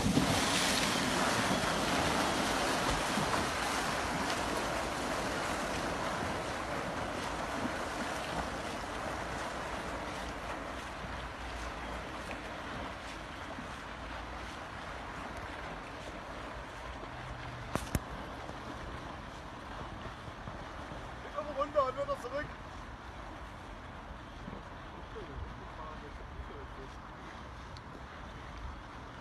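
A small motor craft whines across the water and slowly fades into the distance.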